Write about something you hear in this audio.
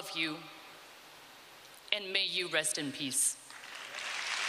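A woman speaks with emotion into a microphone in a large echoing hall.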